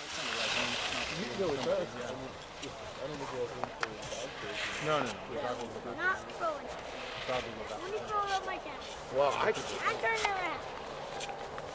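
A crowd of spectators cheers and shouts nearby outdoors.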